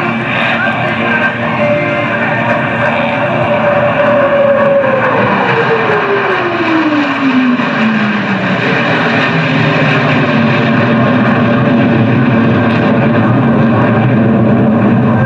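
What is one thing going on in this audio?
A jet engine roars loudly overhead, its pitch dropping as it passes and climbs away.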